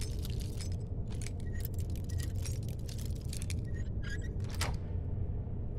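A lock pick clicks and scrapes inside a metal lock.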